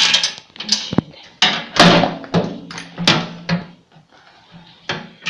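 A metal blade clinks and knocks against a steel housing.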